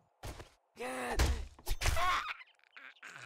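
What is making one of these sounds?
A knife stabs wetly into a body.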